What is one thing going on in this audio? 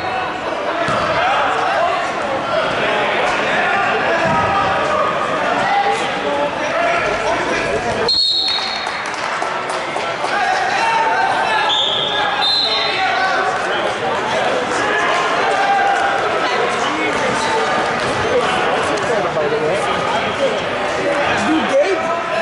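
A crowd of people talks and murmurs throughout a large echoing gym.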